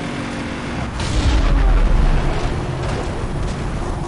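A car lands with a loud thud.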